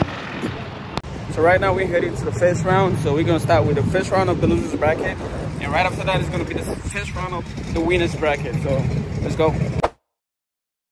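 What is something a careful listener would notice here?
A young man talks with animation close to a microphone, outdoors in wind.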